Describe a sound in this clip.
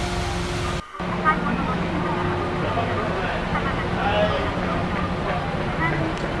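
A car drives slowly past.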